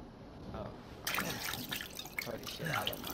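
Liquid squirts from a bottle.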